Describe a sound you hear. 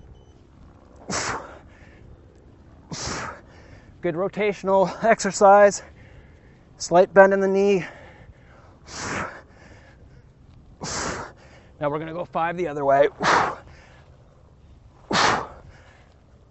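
A man exhales sharply with each swing of a weight.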